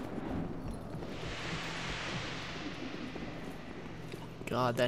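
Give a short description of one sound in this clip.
A misty gate whooshes as a knight passes through it.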